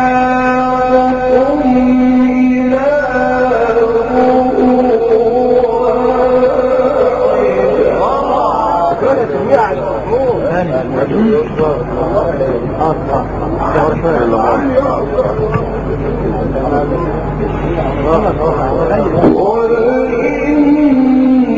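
A young man chants in long, drawn-out melodic notes through a microphone in an echoing space.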